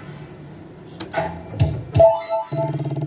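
Slot machine reels stop with sharp clunks.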